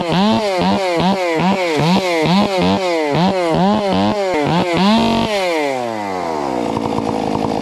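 A chainsaw engine revs up and down rapidly, close by.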